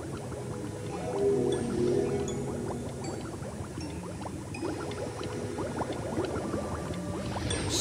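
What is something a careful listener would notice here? Magical sparkles shimmer and chime.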